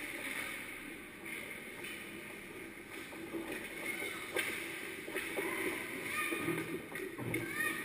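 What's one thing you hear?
Skates scrape and carve across ice in a large echoing rink.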